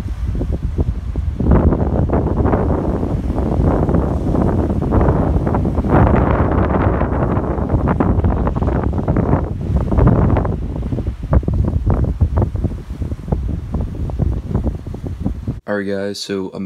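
Strong wind roars and buffets outdoors.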